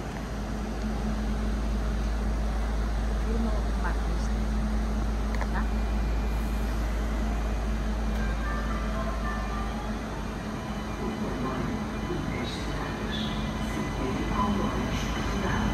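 A train rolls slowly into a station with a low rumble.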